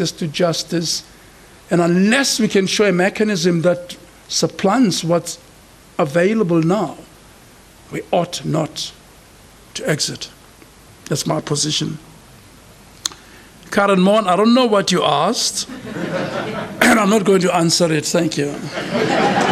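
An elderly man speaks slowly into a microphone in an echoing hall.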